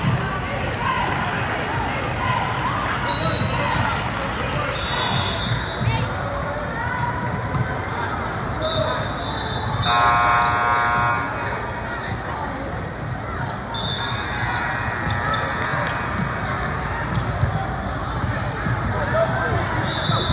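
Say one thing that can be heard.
A crowd chatters loudly in a large echoing hall.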